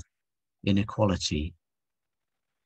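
An older man speaks a few words briefly over an online call.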